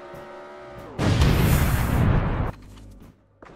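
A loud explosion booms and roars.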